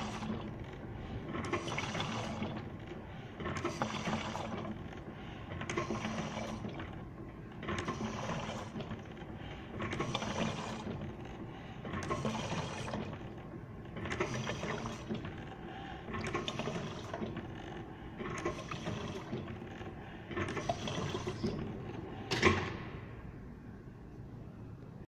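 A filling machine hums and hisses rhythmically.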